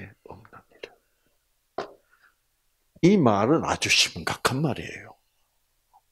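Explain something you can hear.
An elderly man speaks with animation into a microphone, heard through a loudspeaker in an echoing room.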